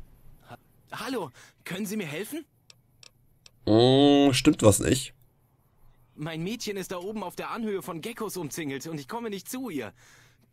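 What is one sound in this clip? A young man speaks pleadingly, close by.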